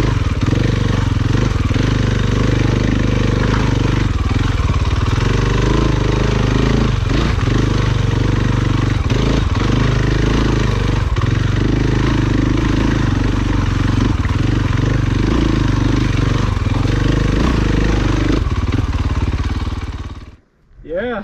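A dirt bike engine revs and putters loudly up close.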